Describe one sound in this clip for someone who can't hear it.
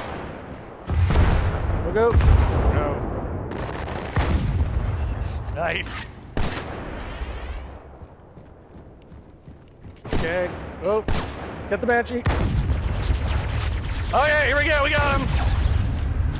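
Gunfire cracks in sharp, loud bursts.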